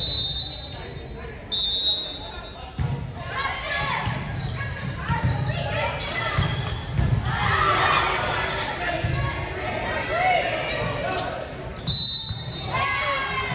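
A whistle blows sharply in a large echoing gym.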